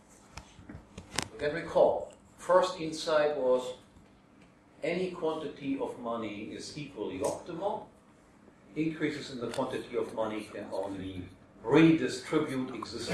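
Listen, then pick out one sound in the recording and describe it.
An older man speaks to a room in a slightly echoing space.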